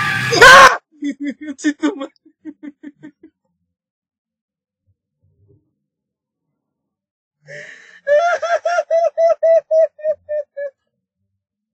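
A young man laughs heartily close to the microphone.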